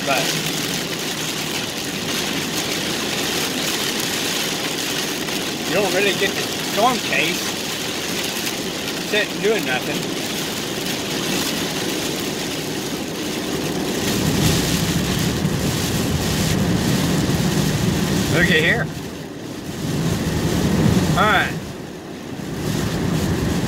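Heavy rain drums on a car windshield.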